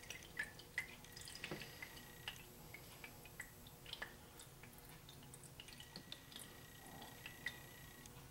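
Liquid drips and trickles from a ladle through a cloth strainer.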